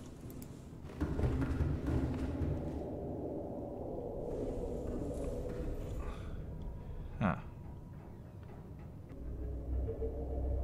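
A low underwater rumble hums steadily.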